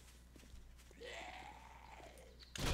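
A zombie lets out a low, drawn-out groan nearby.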